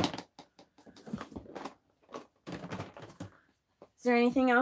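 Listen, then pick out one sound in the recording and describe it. A plastic box clatters and scrapes across a wooden table.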